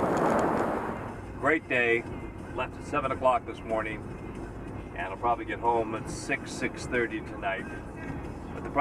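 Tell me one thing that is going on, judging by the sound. A car's engine hums softly inside the cabin.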